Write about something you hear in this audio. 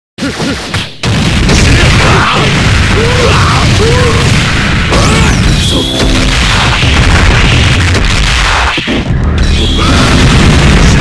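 Punches and kicks land with rapid heavy thuds.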